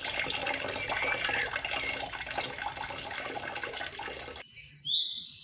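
Water trickles and splashes steadily into a pool.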